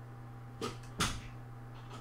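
Snooker balls click together once.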